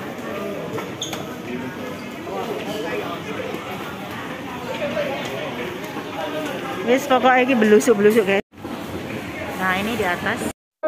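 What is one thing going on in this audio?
A crowd of people murmur and chatter around.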